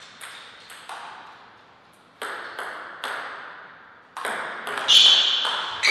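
A table tennis ball clicks back and forth off paddles and the table in a room with some echo.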